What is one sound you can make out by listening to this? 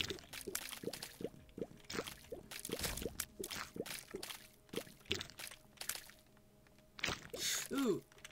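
Small creatures squelch and splatter as they are hit.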